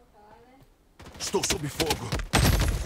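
Rapid rifle gunfire rattles close by.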